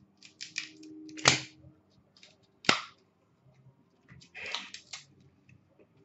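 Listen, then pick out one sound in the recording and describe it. Cards tap and rustle as they are handled.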